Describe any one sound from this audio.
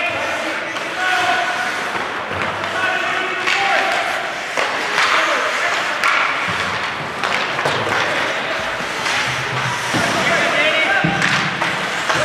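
Skate blades scrape and hiss across ice.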